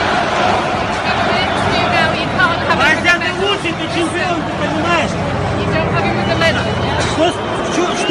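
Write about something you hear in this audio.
Several people shout and cheer excitedly up close.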